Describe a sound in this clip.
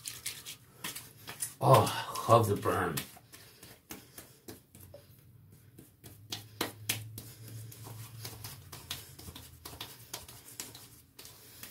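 Hands rub lotion over a face with a soft smearing sound.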